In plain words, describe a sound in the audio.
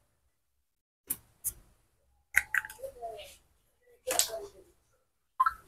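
Plastic packaging rustles and clicks in a man's hands.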